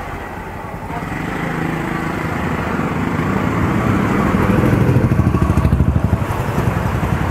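Tyres rumble over a rough road.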